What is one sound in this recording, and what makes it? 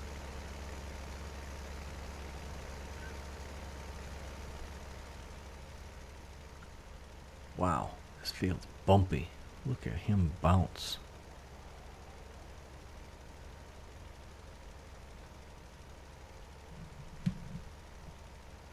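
A tractor engine hums steadily.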